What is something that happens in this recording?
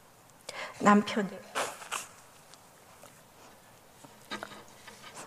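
A middle-aged woman sobs and speaks in a choked, tearful voice through a microphone.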